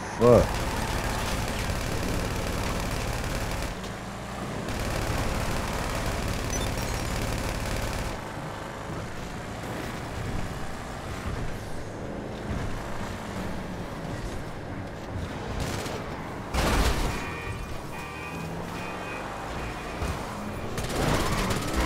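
A car engine roars as it speeds along.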